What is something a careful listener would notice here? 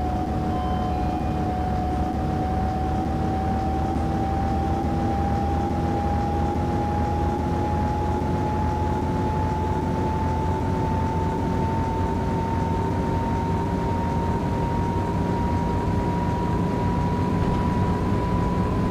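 Tyres rumble on the road.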